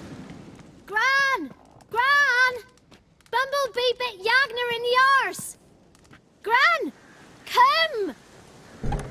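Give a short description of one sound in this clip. A child shouts in a high voice.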